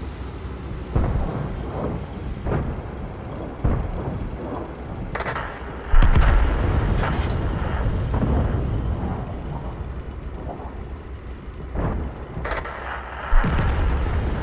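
Tank guns fire with heavy booms.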